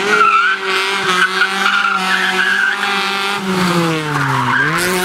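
A car engine roars loudly at high revs, then drops and rises again.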